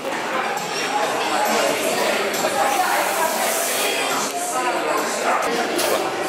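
Customers chatter in a busy room.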